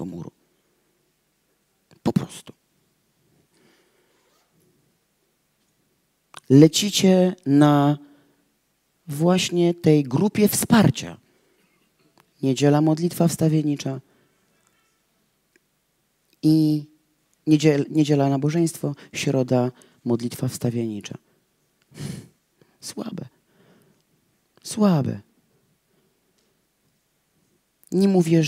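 A woman reads aloud into a microphone in bursts, with pauses between phrases.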